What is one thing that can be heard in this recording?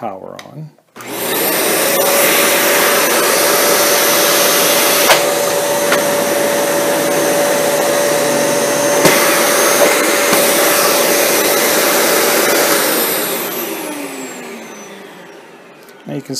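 A vacuum cleaner motor starts up, roars steadily and then slowly winds down.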